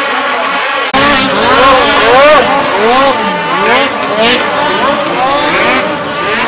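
A snowmobile engine revs and races past.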